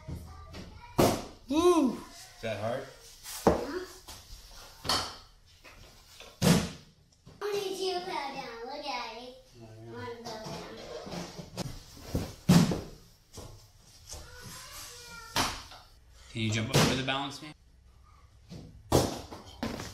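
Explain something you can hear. A young girl's feet thud as she lands jumps on a mat.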